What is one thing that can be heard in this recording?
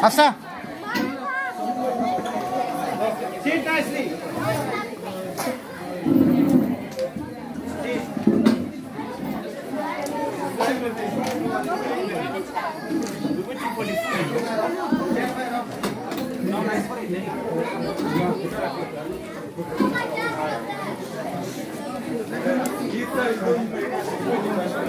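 A crowd of men, women and children chatters throughout in an echoing hall.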